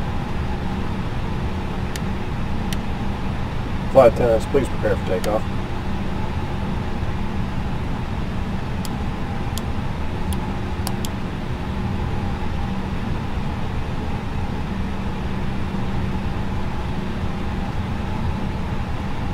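Airliner jet engines hum heard from inside the cockpit.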